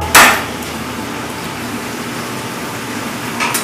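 A knife chops through meat on a cutting board.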